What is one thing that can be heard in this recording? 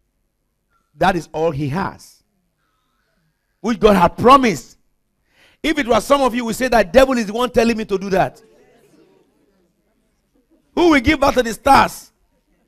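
A middle-aged man preaches with animation through a microphone, in bursts with pauses.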